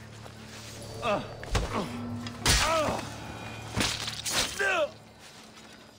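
A man groans and cries out as he is struck down.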